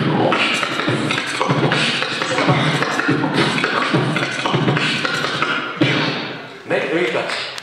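A young man beatboxes rhythmically into a microphone, heard through loudspeakers in a large hall.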